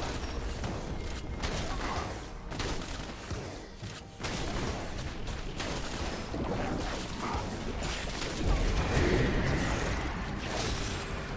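Magic spells crackle and whoosh during a fight.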